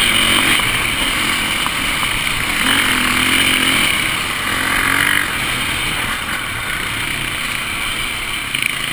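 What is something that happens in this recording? A motorcycle engine revs loudly up close, rising and falling.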